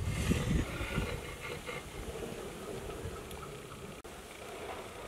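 A metal ladle scrapes and scoops through a pot of rice.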